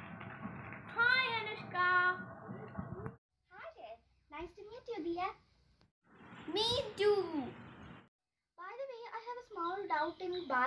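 A young girl talks close by with animation.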